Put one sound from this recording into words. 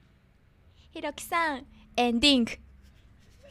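A young woman laughs and squeals loudly into a microphone.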